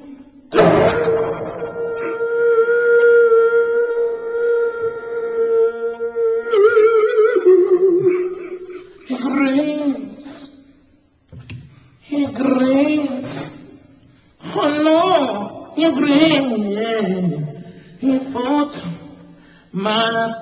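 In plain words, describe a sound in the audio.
A man sings loudly and with feeling into a microphone.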